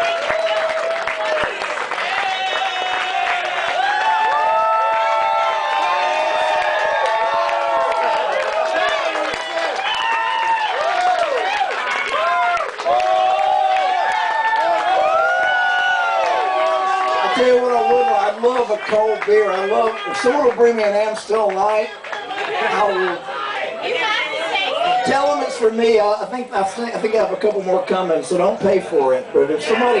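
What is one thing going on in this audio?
A band plays loud live music in a large echoing room.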